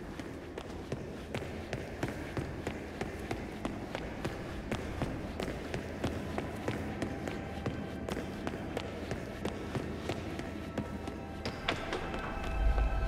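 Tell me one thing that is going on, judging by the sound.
Footsteps climb stone stairs at a steady walking pace.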